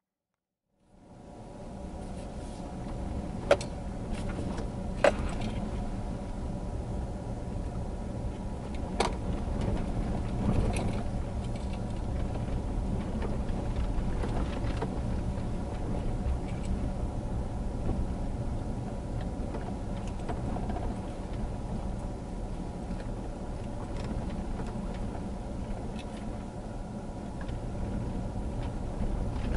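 A vehicle engine rumbles steadily while driving slowly.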